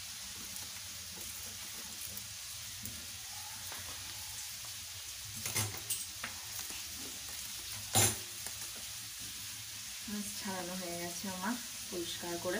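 Hands rub and scrape a wet fish.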